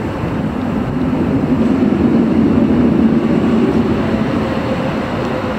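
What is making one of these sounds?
A tram rumbles past close by.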